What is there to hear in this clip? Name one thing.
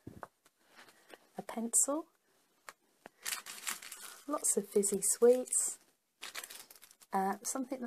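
Paper sheets rustle and crinkle as they are handled.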